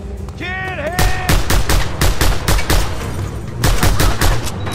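Pistol shots fire in quick bursts.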